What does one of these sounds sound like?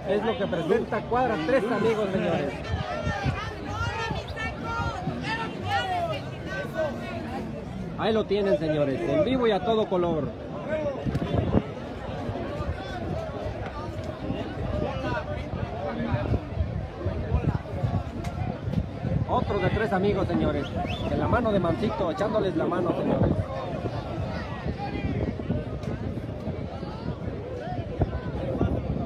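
A crowd of spectators talks and shouts nearby, outdoors.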